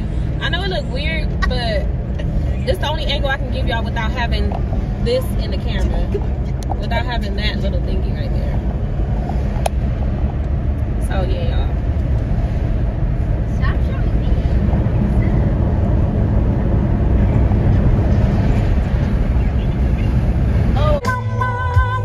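A car's tyres rumble steadily on a highway.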